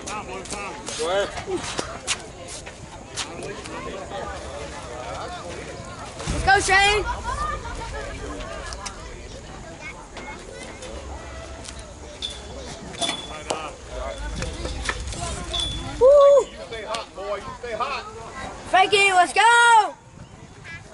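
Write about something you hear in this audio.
Men shout and cheer outdoors.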